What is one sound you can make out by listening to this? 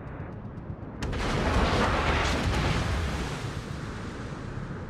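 Shells splash into the sea with a loud, rushing roar.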